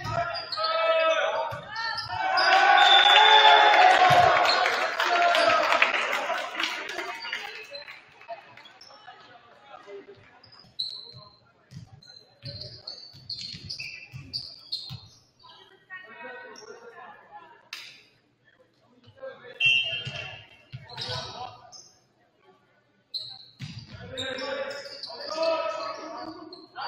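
Young men shout and call out to each other in an echoing gym.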